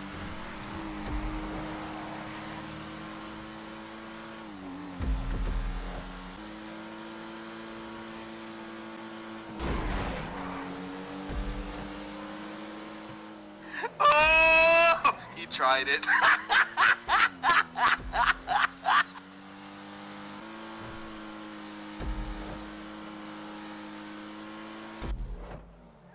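A car engine hums steadily and shifts gear as a car races along a road.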